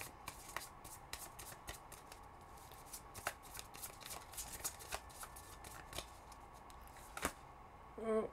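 Cards shuffle and tap softly.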